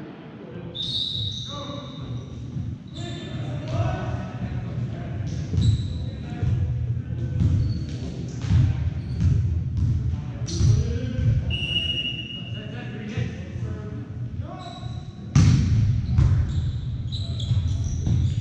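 A volleyball is struck with sharp thumps in a large echoing gym.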